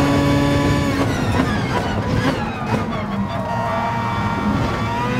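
A racing car engine drops in pitch and burbles as the car brakes hard.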